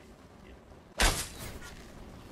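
A fiery explosion bursts with a loud boom.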